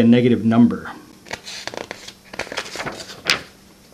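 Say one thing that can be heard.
Paper rustles and shifts under a pair of hands.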